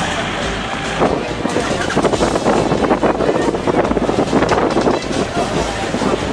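A crowd murmurs and shouts outdoors.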